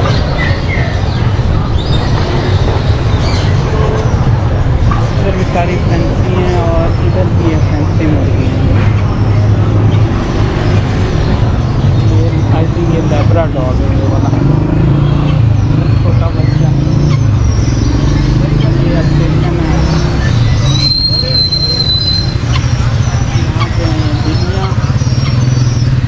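Street traffic rumbles steadily nearby.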